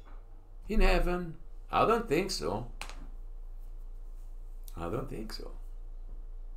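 An older man speaks calmly into a close microphone, reading out in short phrases.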